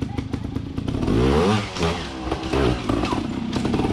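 A motorcycle engine revs hard as it climbs over rocks.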